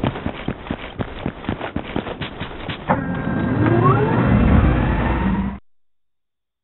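A jet engine roars and rises in pitch.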